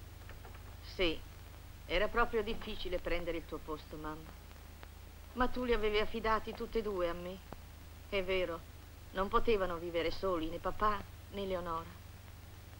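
A woman speaks calmly and seriously, close by.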